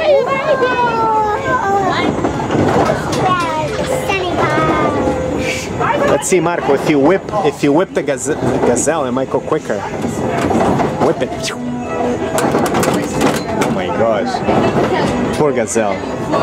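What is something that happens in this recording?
Cheerful carousel organ music plays loudly nearby.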